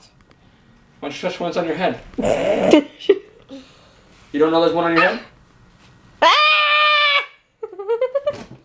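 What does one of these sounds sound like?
A little girl talks and giggles close by.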